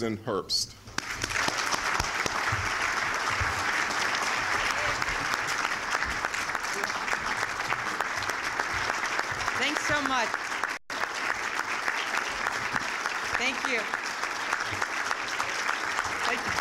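A large crowd applauds steadily in a large hall.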